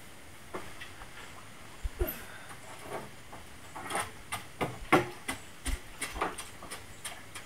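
Water splashes and sloshes as a pole is stirred in a well.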